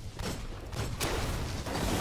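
A sci-fi gun fires sharp energy shots.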